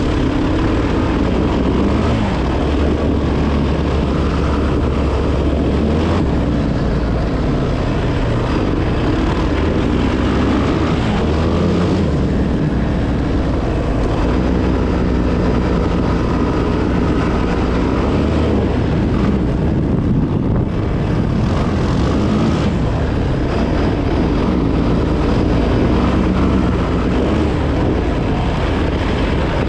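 A motorcycle engine hums and revs steadily close by.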